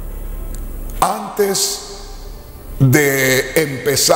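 A middle-aged man speaks with animation into a close microphone.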